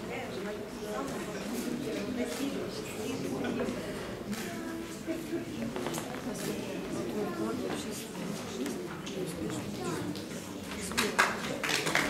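A middle-aged woman talks warmly close by.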